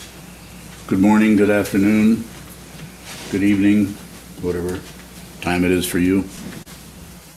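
An elderly man speaks calmly through an online call.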